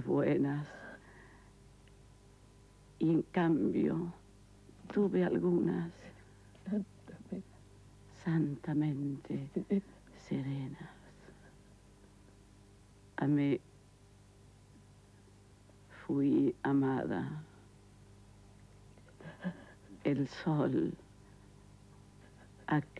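An older woman speaks with emotion, close by.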